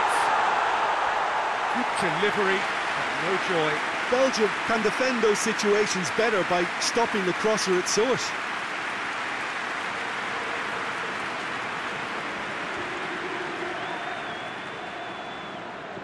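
A large crowd cheers and roars steadily in a stadium.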